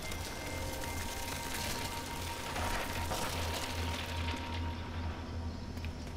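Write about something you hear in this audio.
Heavy roots crumble apart with a rumbling crash.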